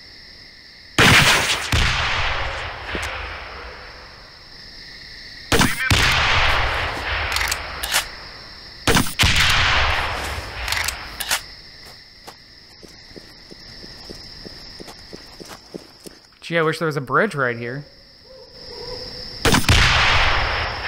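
Loud blasts boom and rumble away, one every few seconds.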